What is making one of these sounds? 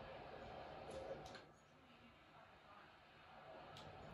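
A bat cracks against a ball through a television speaker.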